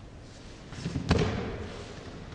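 A body lands with a heavy thud on a mat.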